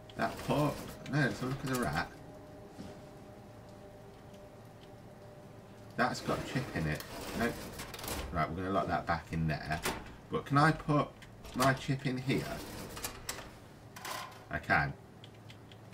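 A metal drawer slides open with a scraping rattle.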